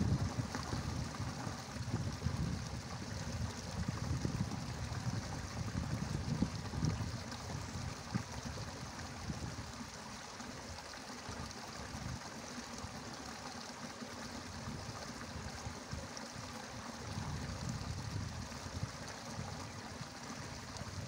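Water trickles gently along a small stream.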